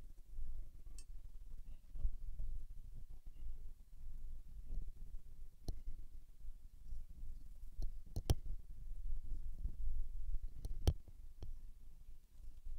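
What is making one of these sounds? A paintbrush lightly dabs and strokes on paper.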